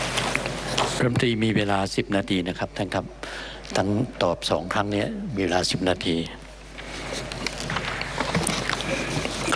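Another man speaks steadily into a microphone, with pauses.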